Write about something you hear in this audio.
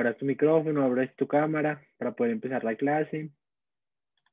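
A young man talks calmly over an online call.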